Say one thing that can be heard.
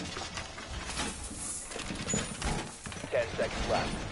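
Barbed wire rattles as it is dragged and set down.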